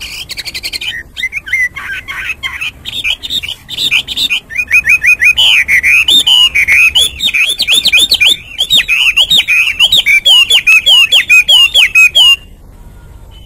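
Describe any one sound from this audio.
A songbird sings loudly and close by, with rapid whistled trills and sweeping notes.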